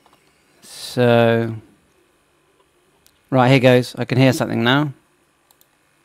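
A man speaks close to a microphone, calmly and in short bursts.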